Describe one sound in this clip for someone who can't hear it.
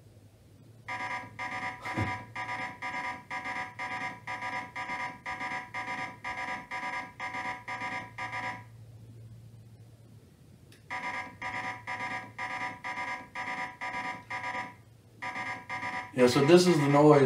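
A video game plays rapid, repeating electronic beeps.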